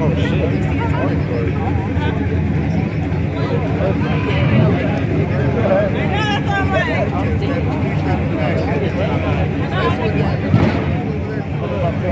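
A crowd of onlookers cheers and shouts outdoors.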